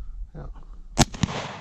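A shotgun fires once with a sharp blast.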